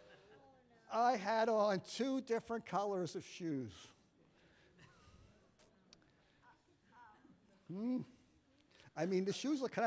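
An elderly man speaks warmly through a microphone.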